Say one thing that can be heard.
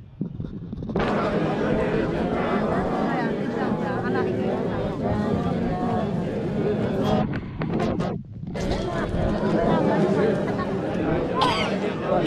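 A crowd of men and women talk and murmur nearby.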